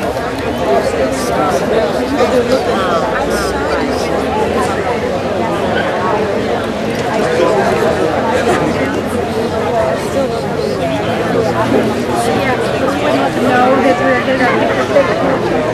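Men and women talk among themselves nearby in a murmuring crowd.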